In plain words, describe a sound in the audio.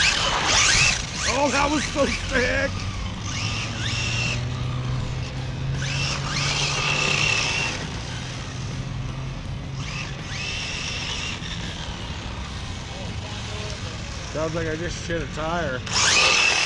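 A small electric motor whines in short bursts.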